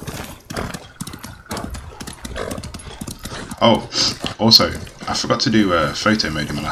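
A horse's hooves clop quickly along a path.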